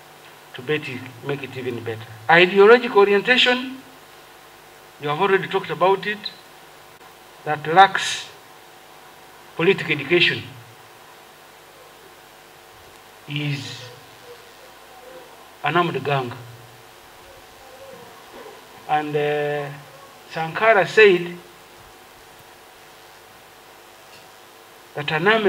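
A man speaks slowly and formally into a microphone, heard through a loudspeaker, with long pauses.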